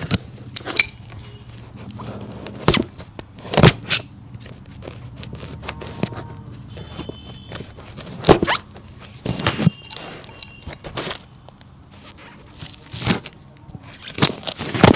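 A hammer taps sharply on a shoe.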